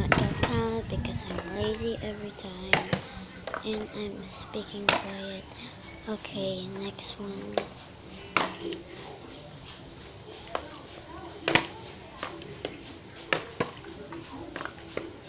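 A plastic bottle crinkles in a child's hand.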